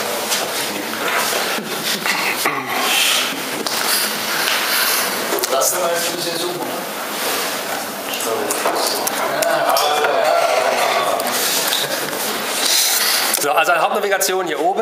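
A man speaks steadily through a microphone in a large echoing hall.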